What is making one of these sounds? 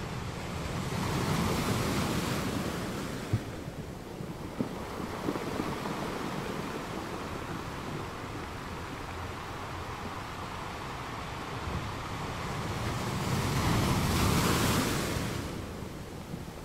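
Ocean waves crash and break over rocks in surging rushes.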